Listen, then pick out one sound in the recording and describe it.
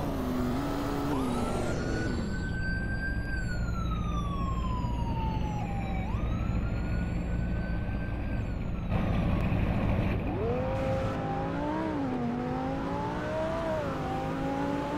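A sports car engine revs up and down, rising in pitch as it speeds away.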